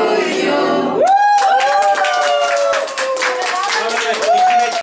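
A group of people cheer.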